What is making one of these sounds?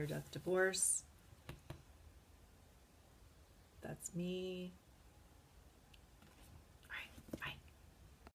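A woman speaks warmly and close to a microphone, in short bursts with pauses.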